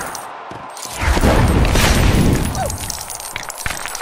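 Wooden crates smash and clatter apart.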